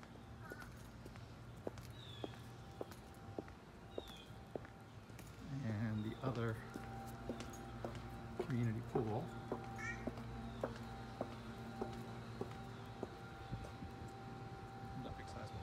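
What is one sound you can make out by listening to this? Footsteps tap steadily on a paved path.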